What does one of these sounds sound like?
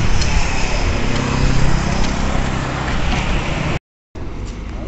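A motorcycle engine hums past nearby.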